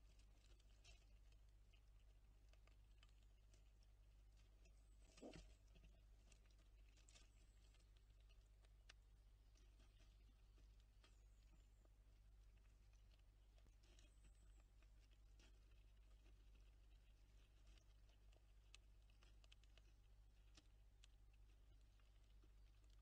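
Squirrels nibble and crunch seeds at a feeder close by.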